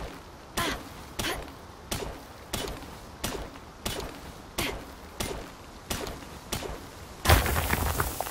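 A pickaxe strikes rock in quick, steady blows.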